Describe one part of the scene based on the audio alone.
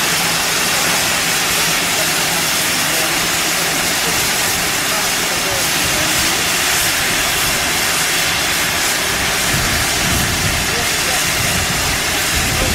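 A steam locomotive hisses loudly as steam escapes.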